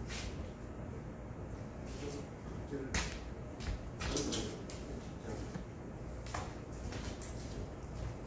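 Footsteps scuff across a hard floor.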